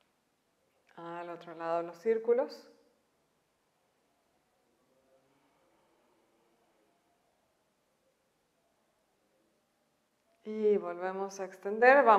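A young woman speaks calmly, giving instructions.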